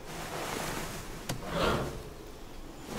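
A metal wrench clanks as it is picked up.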